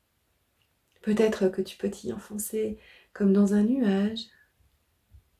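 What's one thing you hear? A woman speaks calmly and clearly, close to the microphone.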